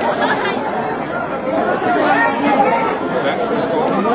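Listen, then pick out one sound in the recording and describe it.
An elderly man talks and laughs close by.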